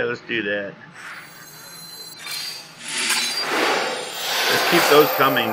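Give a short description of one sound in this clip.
Magical game sound effects whoosh and shimmer.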